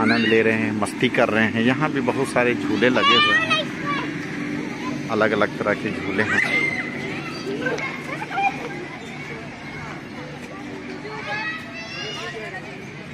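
Children shout and squeal excitedly nearby, outdoors.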